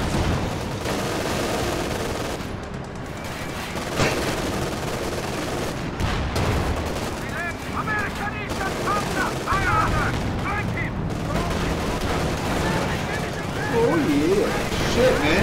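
Gunfire crackles in a distant battle.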